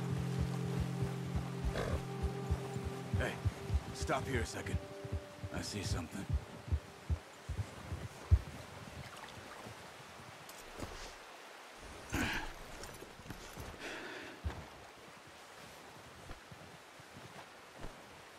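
Horses' hooves crunch through deep snow.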